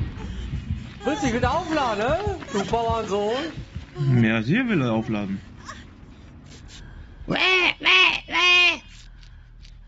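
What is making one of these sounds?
A young man talks animatedly and sings out into a microphone.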